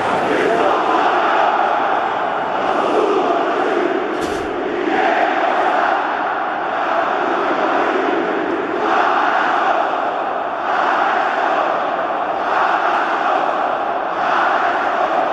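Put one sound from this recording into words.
A large stadium crowd sings and chants loudly in unison, echoing outdoors.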